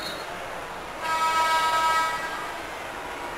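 A buzzer sounds briefly.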